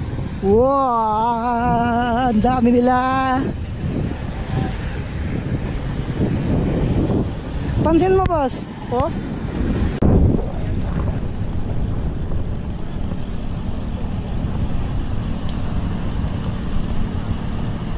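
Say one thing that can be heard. Wind rushes loudly past while cycling outdoors.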